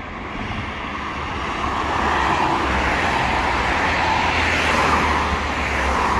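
A van drives past.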